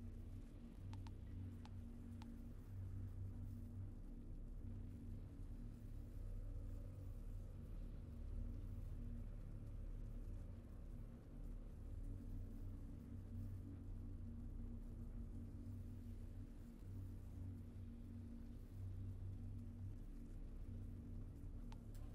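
Soft interface clicks tick a few times.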